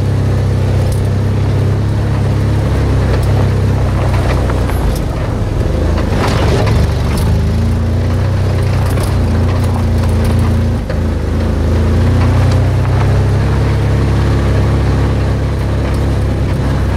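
A vehicle engine hums low and steadily as it drives.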